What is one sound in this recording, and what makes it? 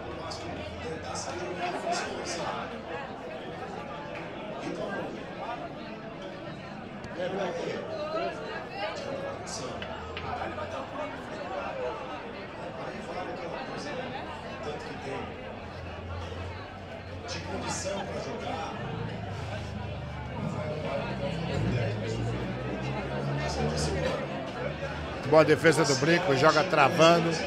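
A crowd of men murmurs and chatters in the room.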